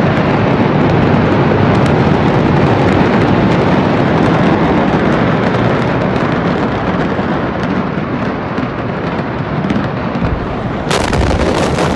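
A large fire roars loudly and steadily outdoors.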